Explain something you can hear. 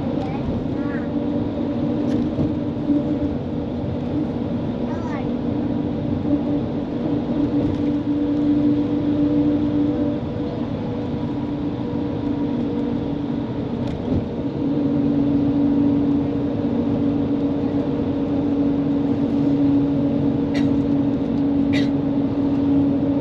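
A vehicle hums steadily as it drives along a road.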